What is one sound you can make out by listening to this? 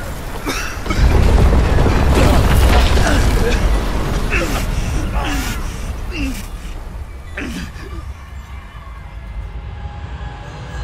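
A huge explosion booms and rumbles deeply.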